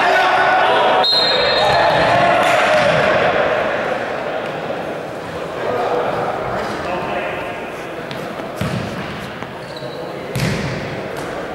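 A ball thuds when kicked.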